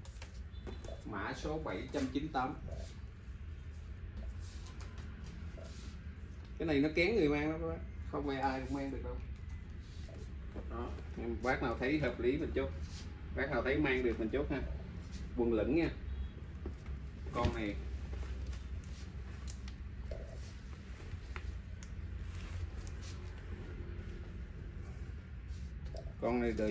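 A middle-aged man talks close by with animation.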